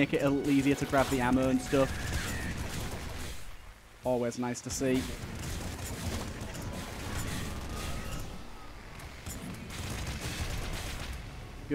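Small guns fire in rapid bursts.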